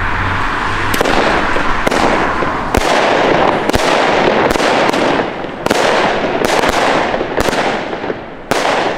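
Fireworks bang and crackle repeatedly outdoors.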